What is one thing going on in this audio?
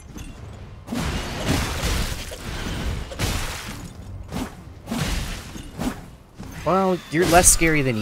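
Sword blows clash and thud in a game.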